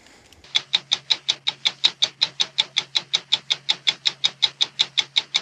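A stopwatch ticks loudly and steadily.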